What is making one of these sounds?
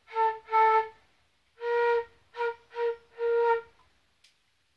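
A flute plays a short run of notes up close.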